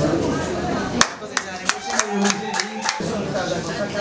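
People clap their hands briefly.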